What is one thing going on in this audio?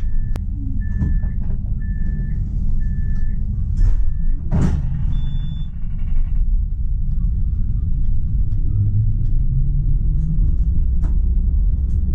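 A tram's motor hums low and steadily as it rolls along the rails.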